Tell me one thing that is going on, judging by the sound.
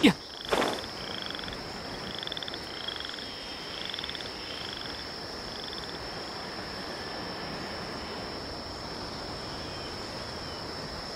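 Air rushes steadily past a glider in flight.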